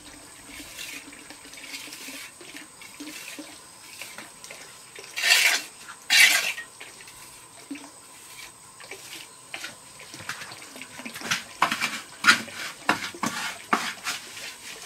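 Trowels scrape and smooth wet concrete.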